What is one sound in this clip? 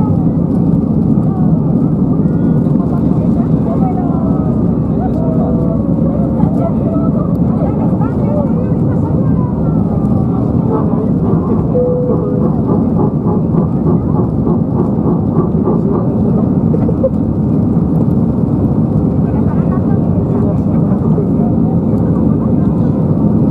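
Jet engines roar loudly and steadily as an airliner takes off.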